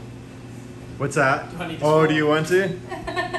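A man speaks close by in a friendly, lively way.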